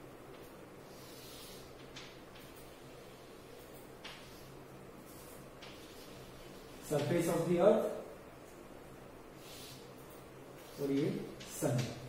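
Chalk scrapes and taps on a board.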